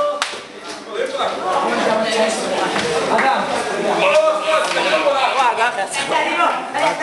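Several boys shout and laugh together in an echoing room.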